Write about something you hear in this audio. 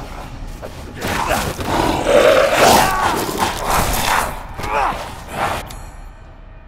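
A monster snarls and roars up close.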